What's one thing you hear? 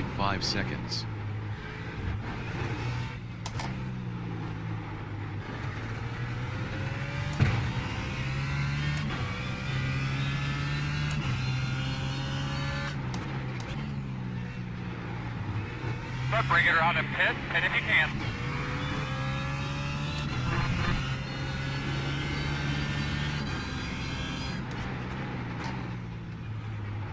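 A racing car engine roars, revving up through the gears and dropping with each shift.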